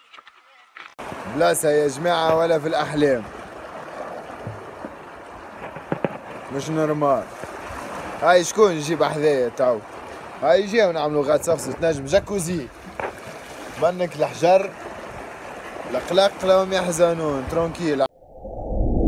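A young man talks with animation close to a phone's microphone, outdoors in wind.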